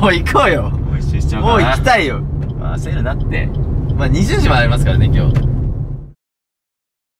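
Young men talk with animation inside a moving car.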